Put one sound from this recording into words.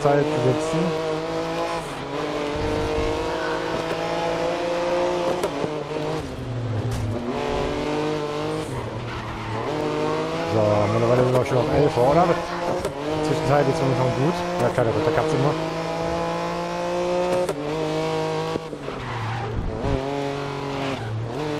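A prototype race car engine screams at high revs, accelerating and shifting through the gears.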